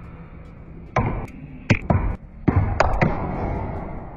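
Snooker balls clack against each other and knock into the table cushions.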